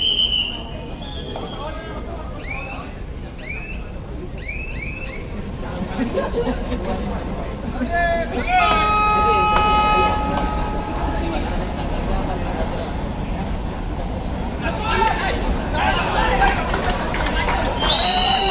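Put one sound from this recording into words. Players shout to each other during the match.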